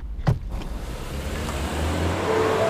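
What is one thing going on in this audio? A car drives along a street.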